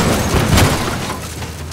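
A car crashes with a heavy thud.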